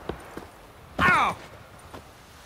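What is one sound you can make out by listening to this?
A man grunts as he jumps down.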